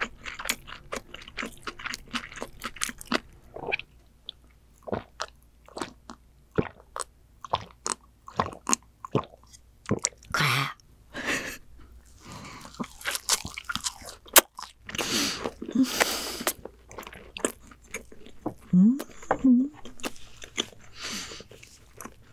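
A young woman chews food close to a microphone with wet, smacking sounds.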